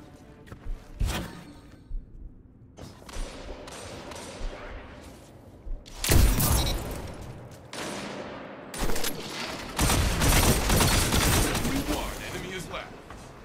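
Loud gunshots fire in quick bursts.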